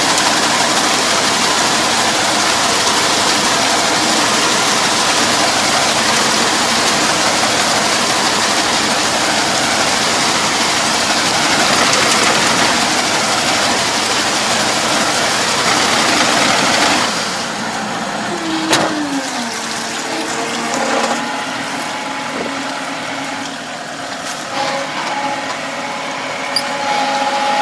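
A tractor engine rumbles steadily close by.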